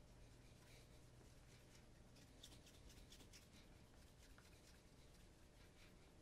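A cloth rubs briskly against a leather shoe.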